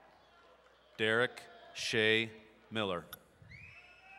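A man reads out over a loudspeaker in a large echoing hall.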